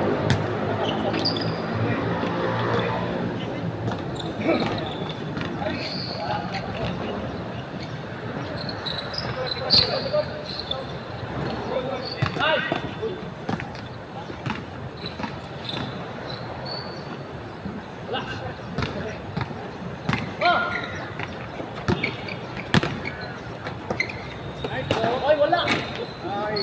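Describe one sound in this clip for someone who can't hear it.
A basketball bounces on a hard court.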